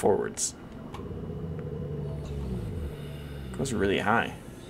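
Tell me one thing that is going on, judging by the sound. A low engine hum drones underwater.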